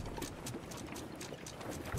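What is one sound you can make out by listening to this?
A man laughs into a close microphone.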